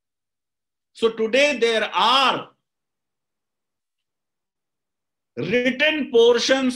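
A middle-aged man speaks with animation over an online call, in short bursts.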